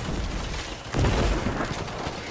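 A heavy melee blow strikes with a thud.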